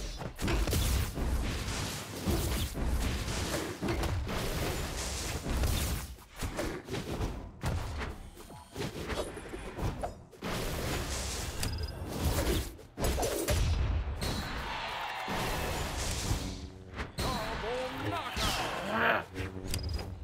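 Game music with heavy beats plays throughout.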